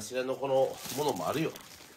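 Plastic packaging crinkles.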